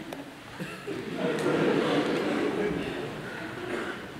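A man speaks through loudspeakers in a large hall.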